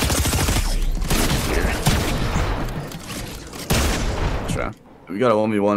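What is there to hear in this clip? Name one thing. Shotgun blasts ring out in quick succession.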